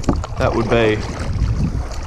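A paddle splashes in the water.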